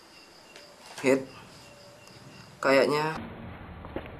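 A young man speaks briefly and calmly, close by.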